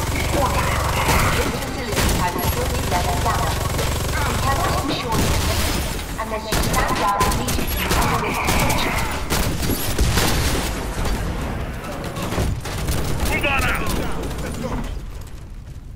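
Rifles fire in rapid bursts.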